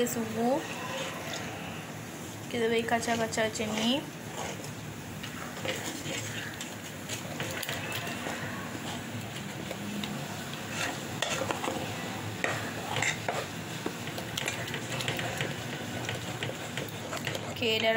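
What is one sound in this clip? A metal spoon stirs and scrapes inside a metal pot.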